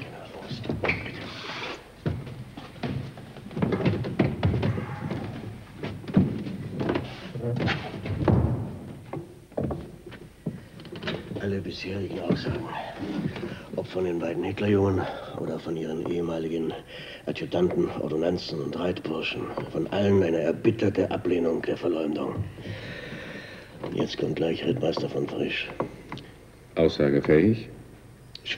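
An elderly man speaks in a low, calm voice close by.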